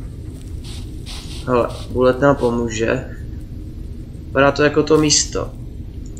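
A dog's paws rustle over dry leaves and forest litter.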